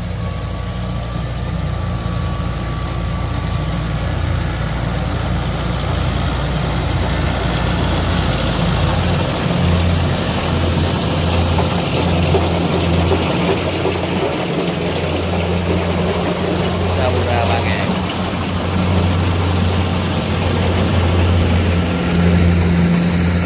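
Cut rice stalks rustle and crunch under the tractor's tyres.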